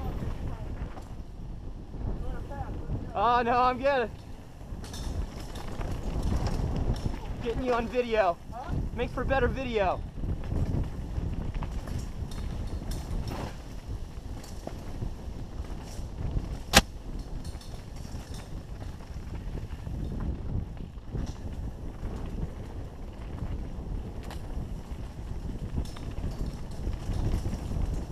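Wind buffets loudly while riding at speed.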